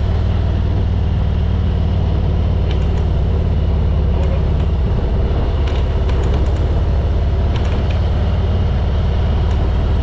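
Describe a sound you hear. A man talks from close by over the engine.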